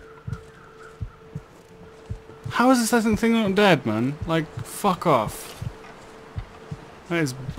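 Footsteps crunch through deep snow at a steady walking pace.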